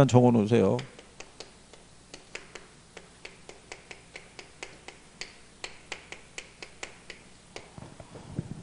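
Chalk taps and scrapes rapidly on a board.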